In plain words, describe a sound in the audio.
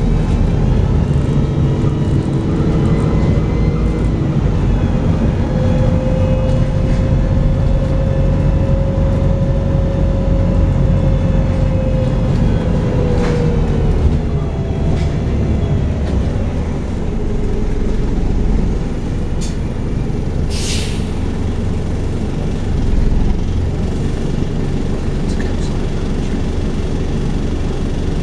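A bus engine rumbles and whines steadily from inside the bus.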